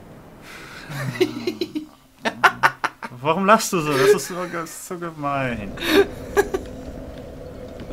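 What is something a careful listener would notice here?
Two young men laugh loudly, close to a microphone.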